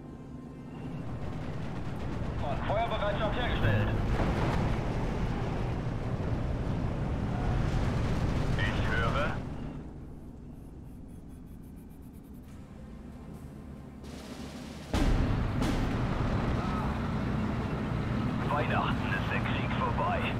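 Gunfire and explosions rumble in a battle.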